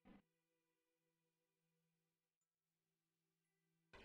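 A spacecraft stage separates with a soft thud.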